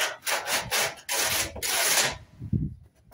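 Insulation and foil rustle and crinkle as they are handled.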